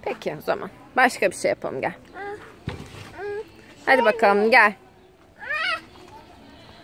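A small child babbles and chatters close by.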